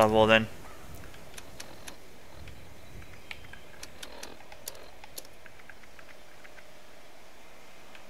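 Soft electronic clicks tick now and then.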